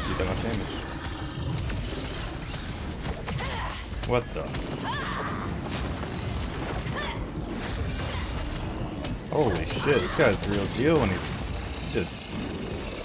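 Magical blasts and explosions boom and crackle.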